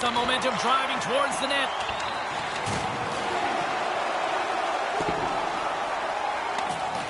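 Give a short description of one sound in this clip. A large crowd murmurs and cheers steadily in a big echoing arena.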